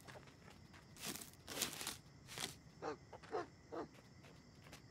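Light footsteps patter on the ground.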